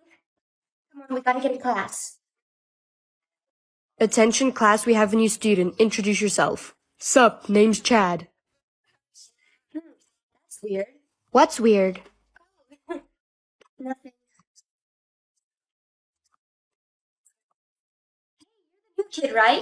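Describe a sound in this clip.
A young woman talks close to a microphone, with animation.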